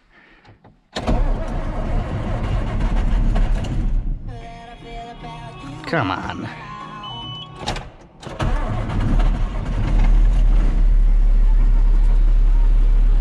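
A tractor engine starts up and rumbles loudly inside a cab.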